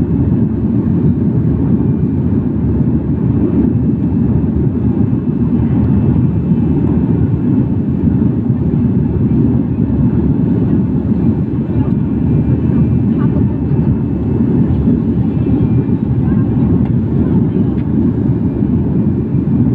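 A jet airliner's engines roar with a steady, low rumble inside the cabin.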